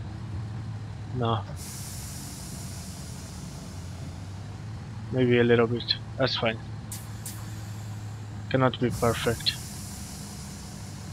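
A train engine idles with a low, steady hum.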